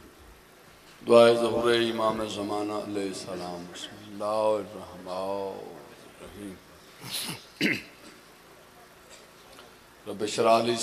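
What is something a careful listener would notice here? A man sings a chant loudly through a microphone.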